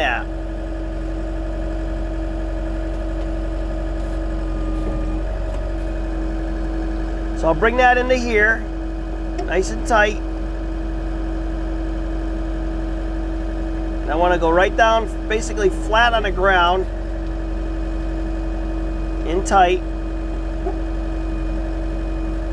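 A small excavator's diesel engine runs with a steady low hum.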